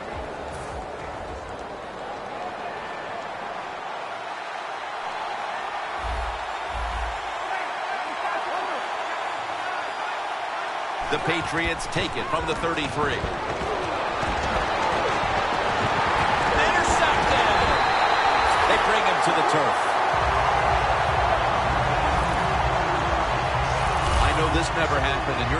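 A stadium crowd cheers steadily, growing louder.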